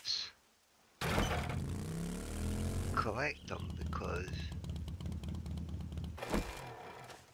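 A small motorbike engine starts and runs with a low, steady rumble.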